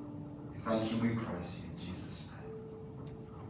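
A man speaks into a microphone in a room with a slight echo.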